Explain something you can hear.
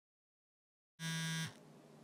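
A mobile phone gives a short electronic tone.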